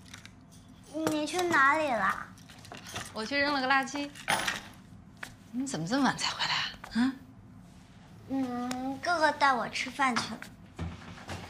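A young woman speaks casually and close by.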